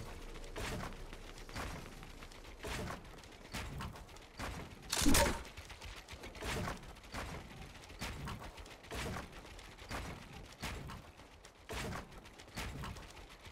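Footsteps patter on wooden floors.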